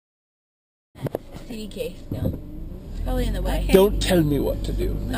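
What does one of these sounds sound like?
A man talks with animation, close by inside a car.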